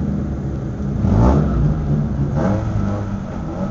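Another race car engine revs nearby.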